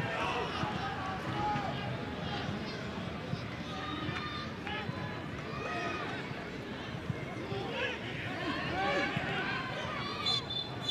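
A large crowd murmurs and chants in an open stadium.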